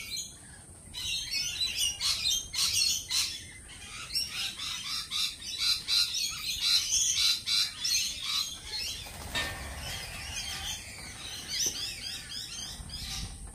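Many birds chirp and twitter busily outdoors.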